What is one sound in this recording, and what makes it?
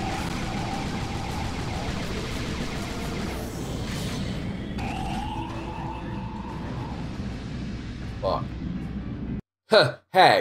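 Gunfire and game sounds roar loudly and steadily.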